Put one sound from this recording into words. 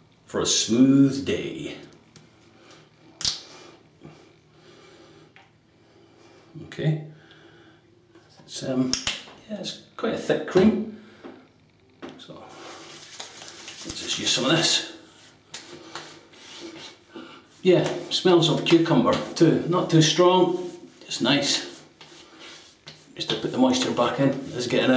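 A middle-aged man talks calmly and close by.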